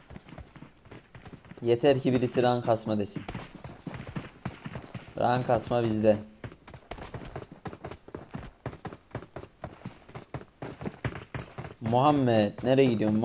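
Footsteps tap quickly on wooden planks.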